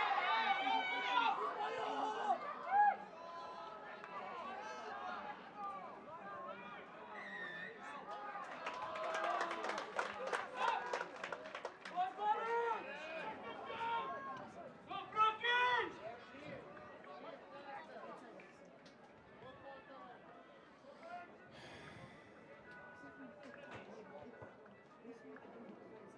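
Young men shout to each other on the field.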